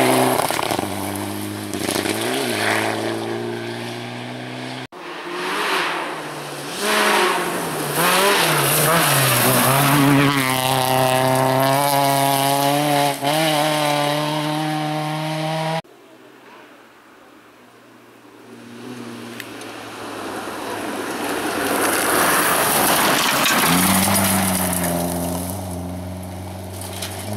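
Tyres crunch and spray loose gravel.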